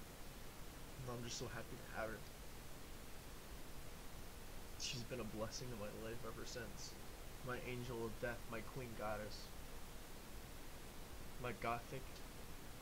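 A young man speaks casually and close to a microphone, in short bursts with pauses.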